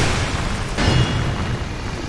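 A sword clangs against armour.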